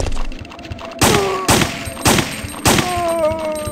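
Pistol shots ring out in quick succession.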